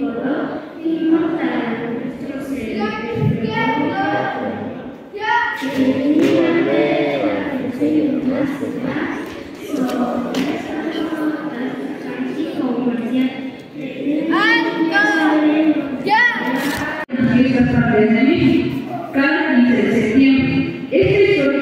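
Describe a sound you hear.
A crowd of children chatters and calls out loudly in a large, echoing hall.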